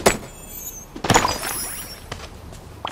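A rock shatters with a sparkling chime.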